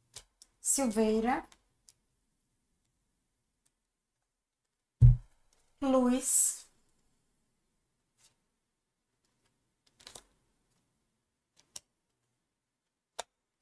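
Playing cards shuffle and flick softly.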